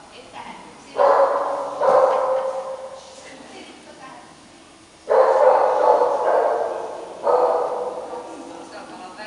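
A woman calls out loudly and cheerfully to a dog nearby.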